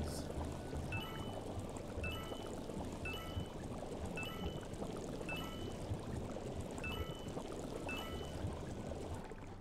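Short bright chimes ring again and again at a steady pace.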